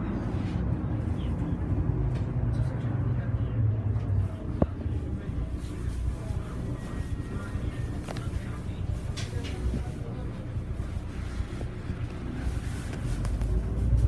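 The bus body rattles and clicks as it drives over the street.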